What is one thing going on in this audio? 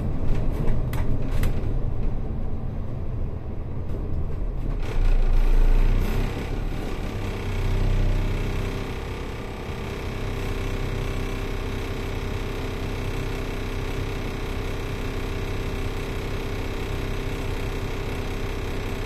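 A bus engine rumbles, loud at first and then settling into a steady idle hum.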